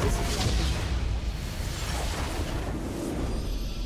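Magic spell effects whoosh and crackle in a fantasy battle.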